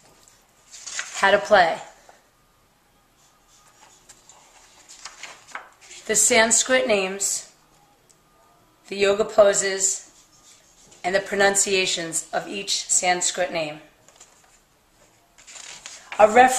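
Pages of a paper booklet are turned by hand.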